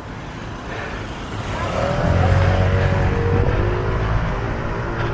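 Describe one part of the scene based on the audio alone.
A motor scooter rides past close by.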